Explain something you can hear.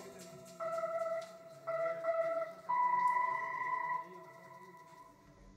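Electronic tones beep in short, steady bursts.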